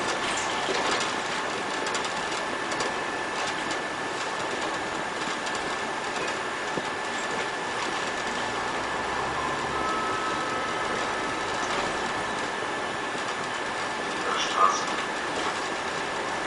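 A city bus drives at low speed along a quiet street.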